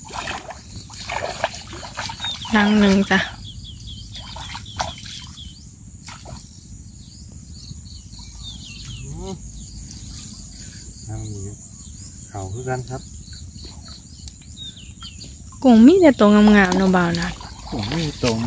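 Water splashes as a man wades and lifts a net trap.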